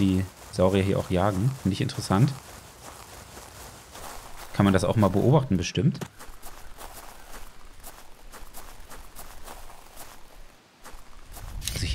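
Footsteps rustle through thick leafy plants.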